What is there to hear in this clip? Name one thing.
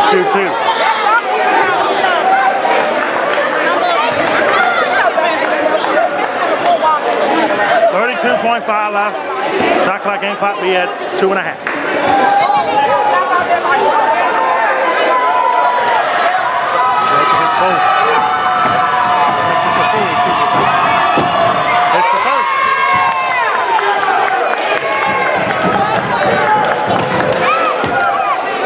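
A crowd of spectators talks and cheers loudly in a large echoing gym.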